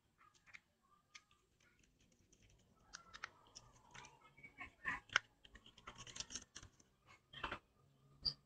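A small screwdriver clicks and scrapes against a phone's screws.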